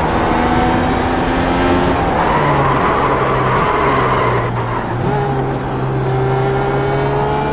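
A racing car engine roars loudly, its pitch shifting as the gears change.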